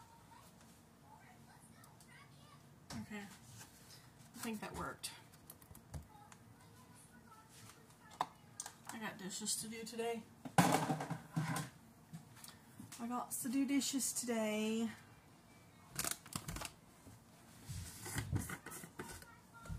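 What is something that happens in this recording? Plastic containers rustle and clatter.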